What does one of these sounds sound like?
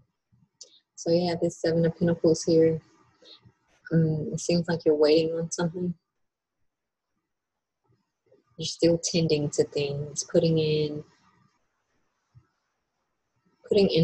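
A young woman talks calmly and close to the microphone, with pauses.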